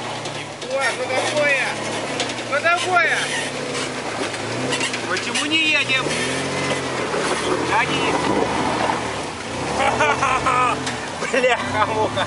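Tyres squelch and churn through thick mud.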